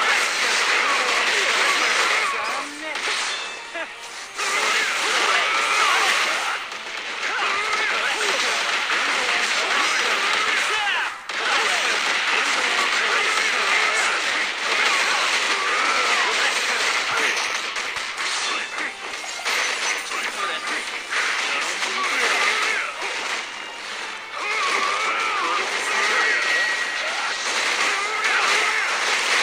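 Fight effects crash and blast rapidly.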